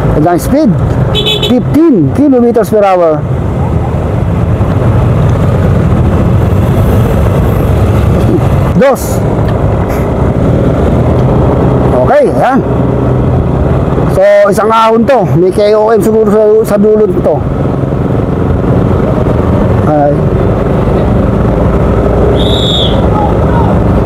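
A motorcycle engine hums and revs as the bike rides along.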